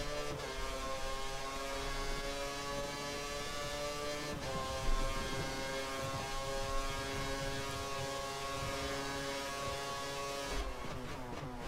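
A racing car engine screams at high revs, with sharp gear shifts upward.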